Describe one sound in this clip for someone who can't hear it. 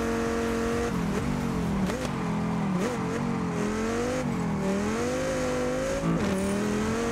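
A car engine slows and revs up unevenly through a bend.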